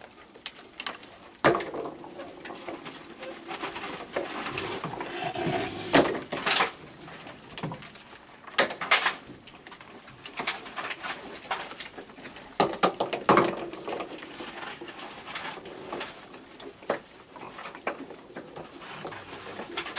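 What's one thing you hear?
Raccoons munch and crunch dry food.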